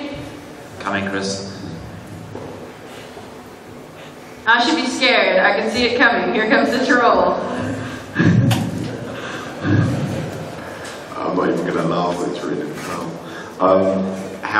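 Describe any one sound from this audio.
A woman speaks through a microphone in a large echoing hall.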